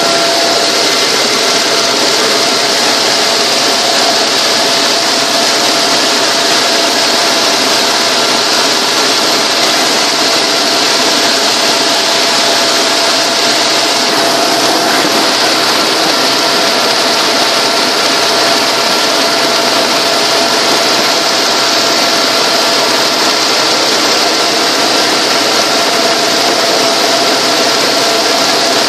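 A helicopter engine and rotor roar steadily and loudly close by.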